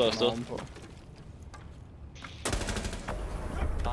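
A rifle clatters and rattles.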